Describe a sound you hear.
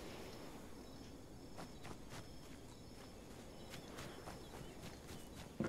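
Footsteps crunch on packed dirt.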